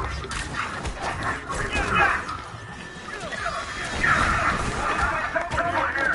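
Punches and kicks thud against enemies.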